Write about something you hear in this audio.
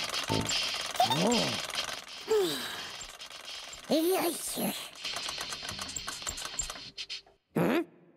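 A small cartoon creature makes high, gliding squeaks and coos.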